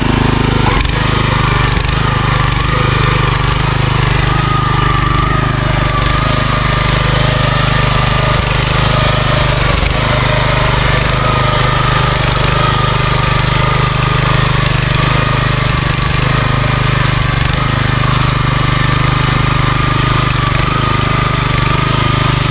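A small petrol engine runs loudly and steadily close by.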